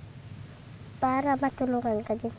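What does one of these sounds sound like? A young boy answers in a small, quiet voice.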